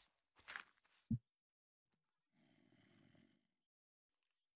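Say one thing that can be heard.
A brush scrapes softly against gravel in a game.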